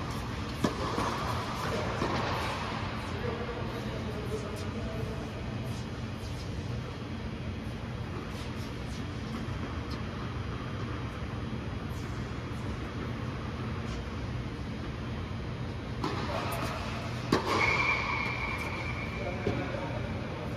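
Tennis balls thud off rackets in a large echoing hall.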